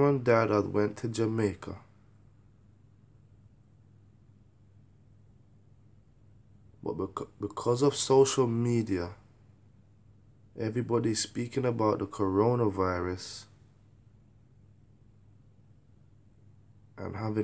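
A man speaks calmly and close by, in short bursts with pauses.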